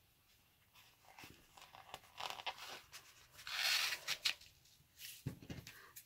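A foam sheet rustles and scrapes as it is handled.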